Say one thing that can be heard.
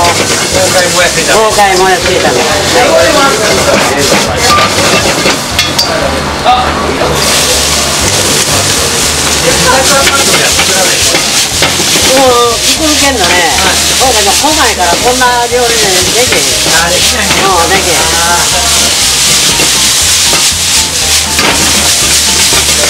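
Chopsticks scrape and clatter against a wok.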